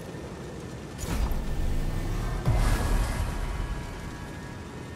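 A magical whoosh bursts out in the game.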